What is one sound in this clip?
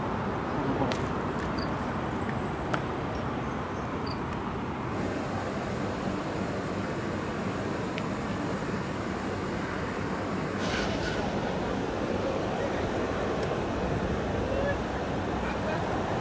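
Traffic roars steadily along a nearby road.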